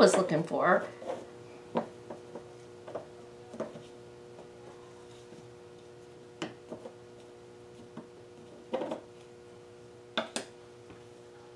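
A wooden stick taps and scrapes against a small cup.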